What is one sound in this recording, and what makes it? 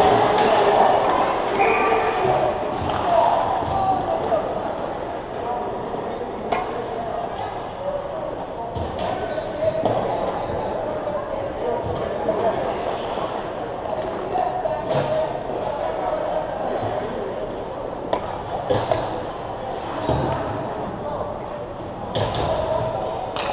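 Skate blades scrape and hiss on ice close by.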